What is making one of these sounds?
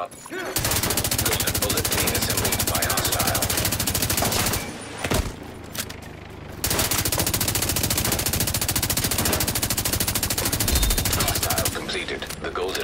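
A rifle fires in rapid, sustained bursts.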